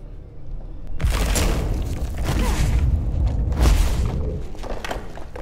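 Heavy chunks of rock crash and rumble as they fly past.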